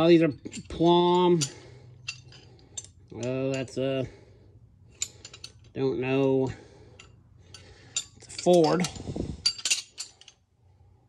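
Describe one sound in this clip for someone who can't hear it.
Metal wrenches clink together as they are handled.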